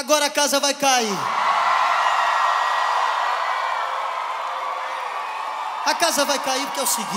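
A large crowd cheers and screams loudly in a big hall.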